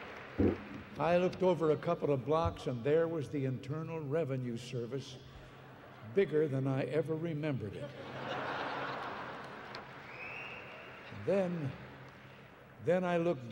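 An elderly man speaks into a microphone in a large hall.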